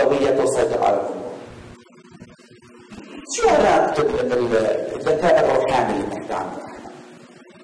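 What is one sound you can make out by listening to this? A middle-aged man speaks calmly into a microphone in a large echoing room.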